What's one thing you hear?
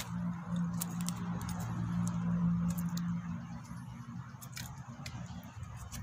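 Footsteps crunch on dry ground close by.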